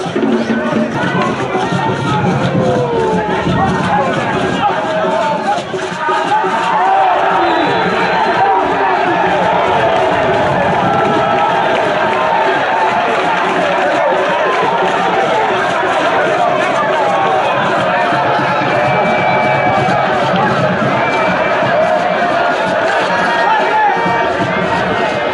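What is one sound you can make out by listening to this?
A crowd of spectators cheers and chatters loudly outdoors.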